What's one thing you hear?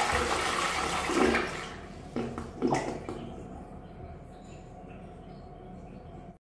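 Water rushes and gurgles as a toilet flushes, then quiets down.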